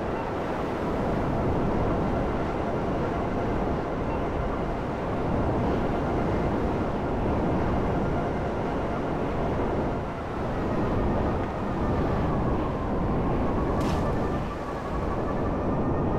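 A jet engine roars steadily with a loud rushing whoosh.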